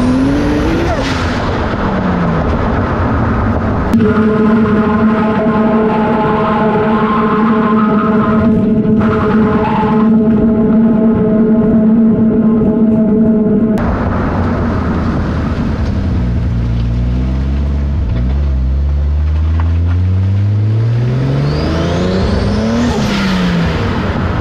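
Tyres roll on the road surface with a steady rush.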